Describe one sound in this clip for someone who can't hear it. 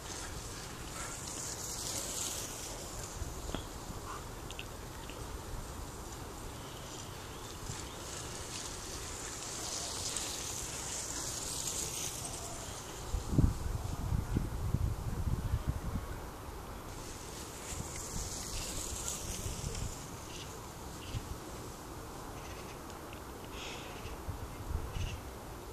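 Bicycle tyres roll and crunch over a muddy track as riders pass close by.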